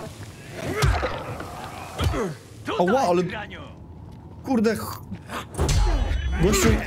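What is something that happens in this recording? A heavy blunt weapon thuds against a body.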